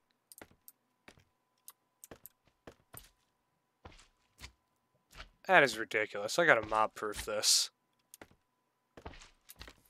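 Blocks are placed with short soft clicks.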